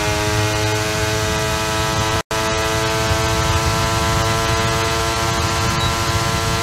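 A racing car engine screams at high, steady revs.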